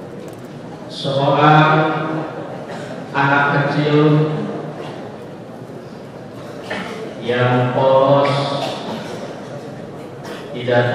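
A man speaks into a microphone in a slow, chanting voice, with some echo in the room.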